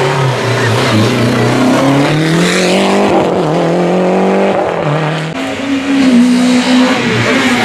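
A rally car engine roars at high revs, climbing in pitch and dropping sharply with each gear change as the car speeds past.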